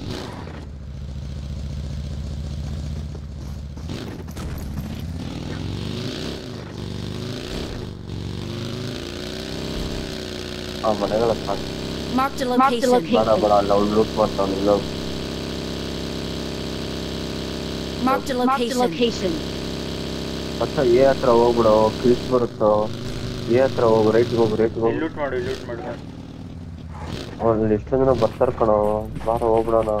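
A buggy engine drones steadily.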